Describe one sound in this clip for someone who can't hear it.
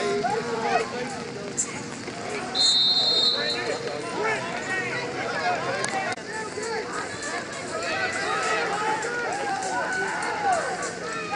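A crowd of people shouts and cheers outdoors.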